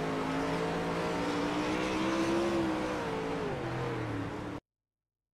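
Racing car engines roar loudly and rise and fall in pitch.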